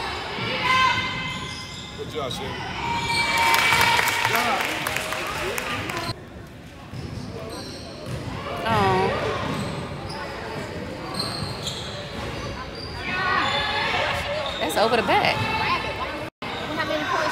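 Spectators talk and cheer in a large echoing gym.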